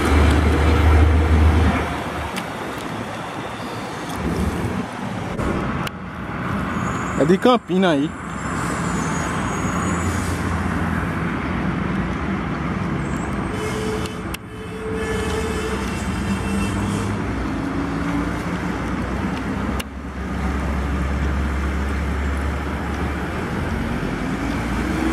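Truck tyres roll and hiss on the road.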